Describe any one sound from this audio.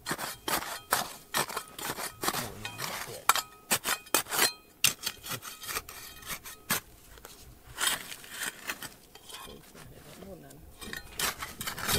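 A small metal trowel scrapes and digs into dry, stony soil.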